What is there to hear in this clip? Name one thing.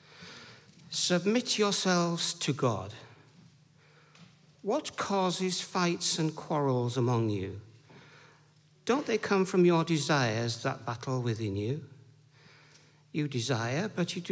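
A middle-aged man reads aloud calmly into a microphone.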